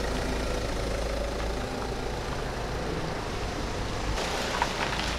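A van engine idles with a low, steady hum.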